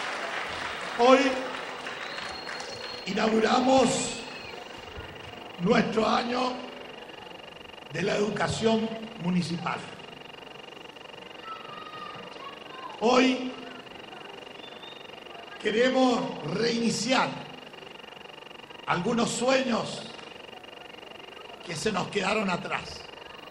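An elderly man speaks slowly and with emphasis through a microphone and loudspeakers, pausing between phrases.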